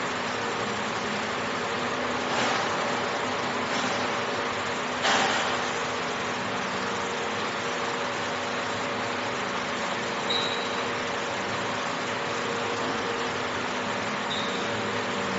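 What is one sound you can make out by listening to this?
A fiber laser engraver hums as it marks metal.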